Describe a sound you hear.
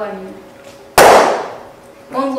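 A balloon bursts with a loud bang.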